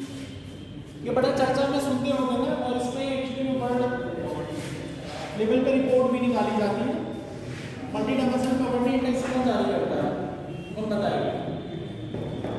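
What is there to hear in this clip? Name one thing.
A man speaks loudly and clearly in a room with some echo.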